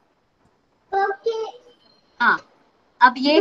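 A young girl speaks over an online call.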